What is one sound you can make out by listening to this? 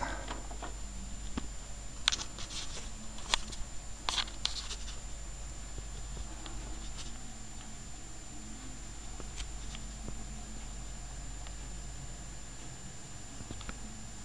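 A vinyl record crackles and pops softly under the needle.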